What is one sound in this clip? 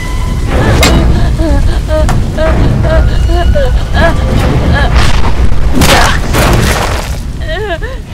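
Bodies thud and scuffle in a struggle.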